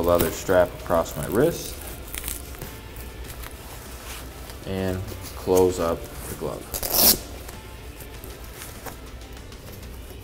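A hook-and-loop strap rips and presses shut.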